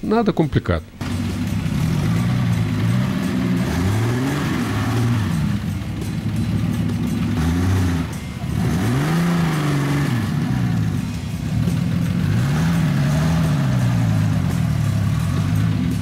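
An off-road vehicle's engine revs up and down as it crawls over rough ground.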